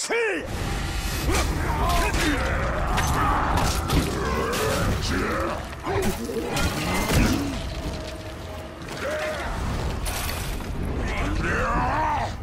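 Blades slash and heavy blows thud in a fight.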